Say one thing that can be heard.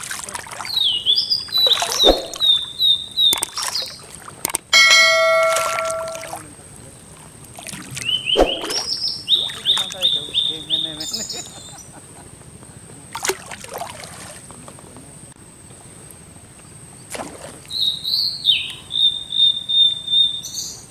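Water sloshes as a person wades slowly through it.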